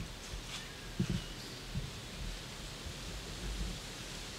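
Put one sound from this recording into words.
A deer steps through dry leaves, rustling them.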